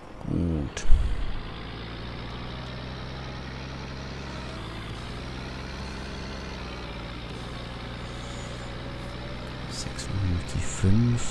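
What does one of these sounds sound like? A tractor engine rumbles louder as the tractor drives off.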